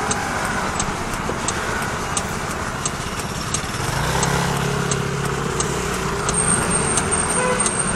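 Traffic rumbles steadily on a street outdoors.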